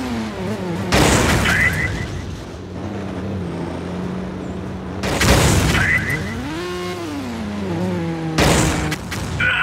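Loud explosions boom.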